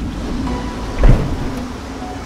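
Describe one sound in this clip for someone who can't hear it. A heavy thud sounds as a man lands on the ground.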